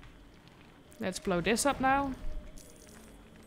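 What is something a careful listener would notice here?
A bright magical blast bursts with a crackle.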